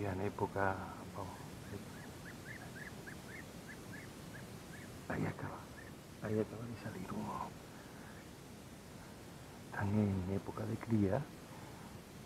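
A man speaks quietly and close by, in short bursts.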